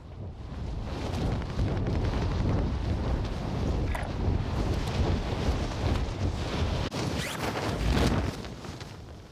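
Wind rushes loudly past during a fast fall.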